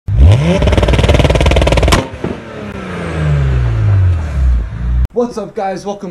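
A car engine revs hard with a rapid crackling rumble, then winds down.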